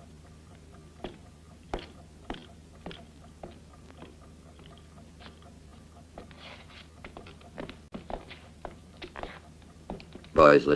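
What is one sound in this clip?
Boots knock on a wooden floor.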